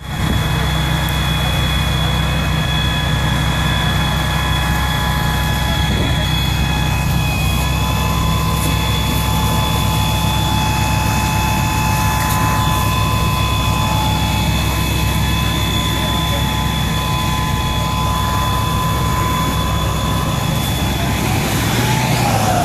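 A fire engine's motor idles with a steady low rumble.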